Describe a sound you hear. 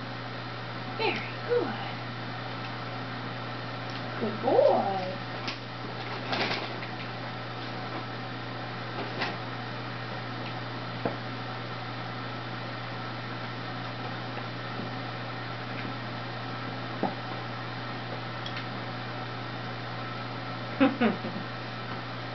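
A dog whines softly.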